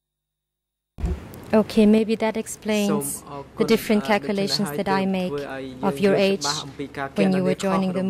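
A young woman reads out steadily into a microphone.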